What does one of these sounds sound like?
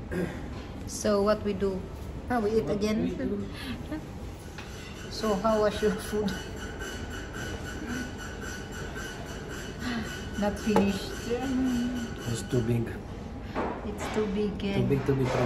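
A woman talks casually close by.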